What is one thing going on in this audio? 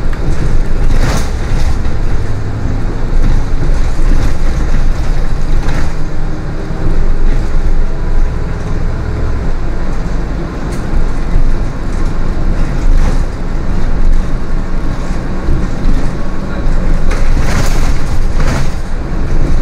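The bus body rattles and clunks over bumps in the road.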